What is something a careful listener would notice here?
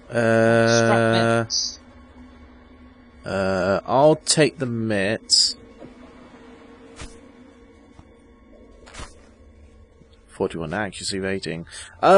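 A young man talks into a close microphone in animated bursts.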